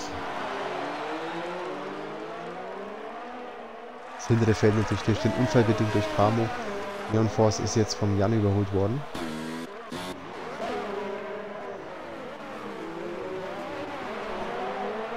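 Racing car engines whine and rise and fall in pitch as cars speed past.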